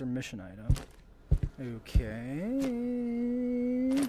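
A plastic case clicks open.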